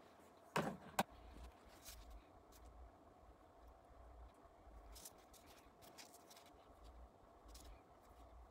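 Small metal parts click and clink as fingers handle them.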